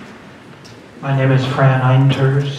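A middle-aged man speaks into a microphone.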